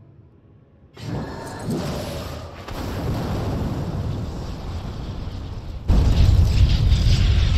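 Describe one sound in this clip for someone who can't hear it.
A loud magical rushing roar swells and grows louder.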